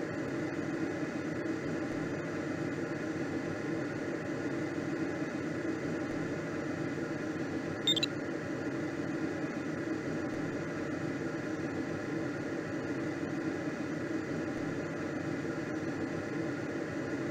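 Wind rushes steadily past a gliding aircraft.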